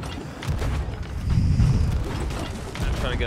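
A cannon booms in the distance.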